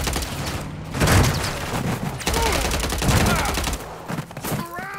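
A car crashes with a loud bang and rattle.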